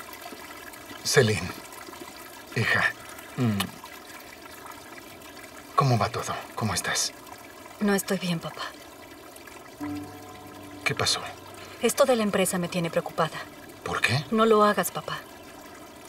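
A man speaks calmly in a low voice close by.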